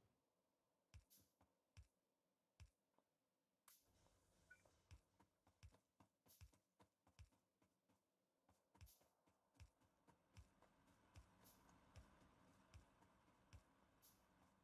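Footsteps tap softly at an even pace.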